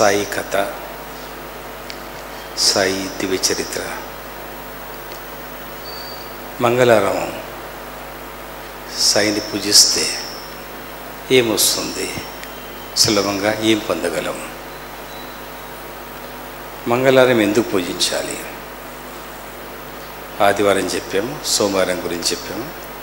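A middle-aged man speaks slowly and calmly into a microphone, in short phrases with pauses.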